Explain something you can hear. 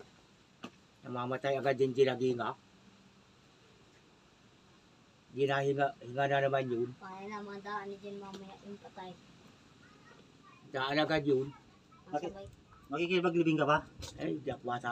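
An older man answers calmly in a low voice nearby.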